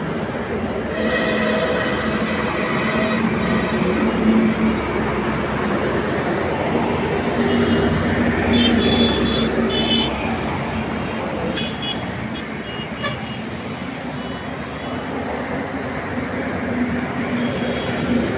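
A truck engine drones as it drives past.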